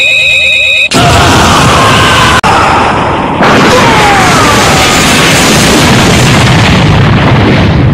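A huge blast roars.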